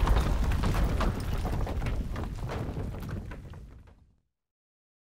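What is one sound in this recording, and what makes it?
Rock fragments crackle and clatter as they scatter.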